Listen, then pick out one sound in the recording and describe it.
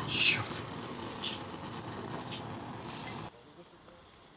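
A gas burner hisses softly.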